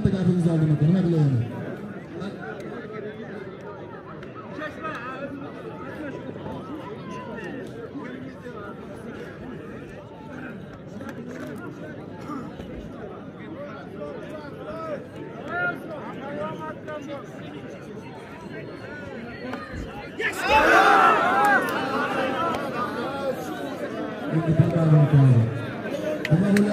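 A large outdoor crowd chatters steadily.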